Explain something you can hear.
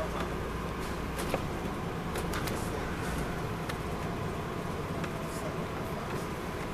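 Tyres rumble on the road beneath a moving bus.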